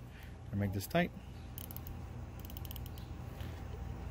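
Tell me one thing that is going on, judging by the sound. A small plastic plug clicks into a socket.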